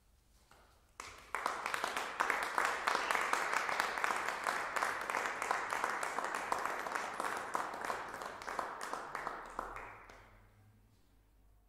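An audience applauds loudly, then the clapping fades.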